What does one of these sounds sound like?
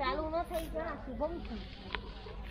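A boy speaks casually close by.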